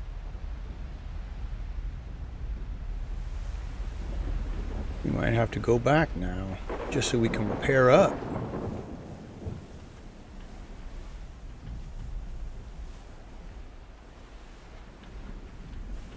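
Rough sea water churns and surges.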